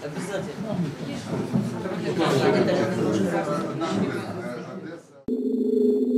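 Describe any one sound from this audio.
A woman speaks with animation in a room, close by.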